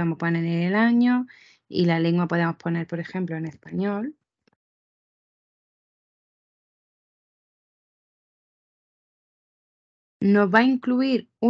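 A young woman talks calmly through a microphone.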